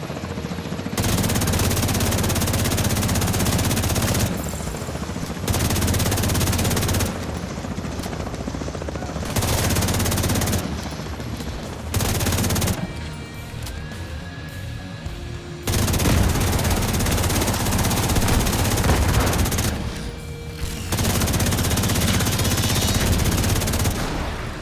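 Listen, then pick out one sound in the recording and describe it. An automatic rifle fires in loud bursts.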